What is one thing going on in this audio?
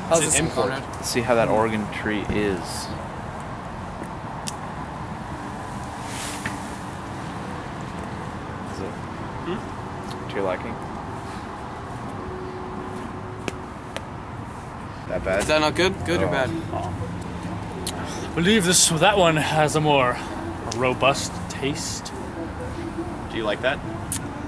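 Young men talk with animation close by, outdoors.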